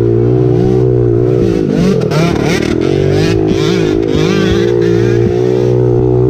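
A dirt bike engine revs up and down sharply.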